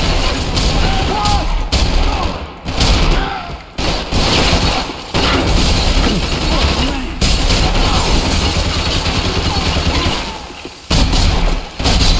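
Window glass shatters and tinkles.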